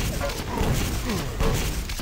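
A gun fires an energy beam in rapid bursts.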